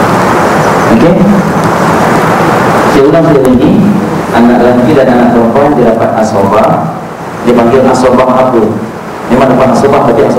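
A man speaks steadily through a microphone, explaining at length.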